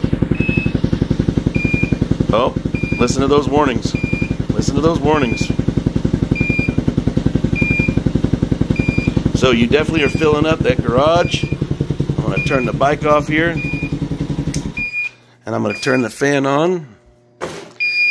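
A handheld meter beeps in short, evenly spaced chirps.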